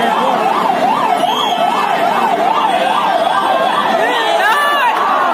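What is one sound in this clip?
A siren wails up and down steadily close by.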